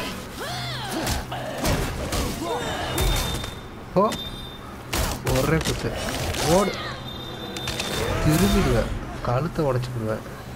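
Heavy blows land with loud thuds and cracks.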